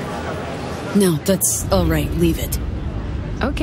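A man answers briefly.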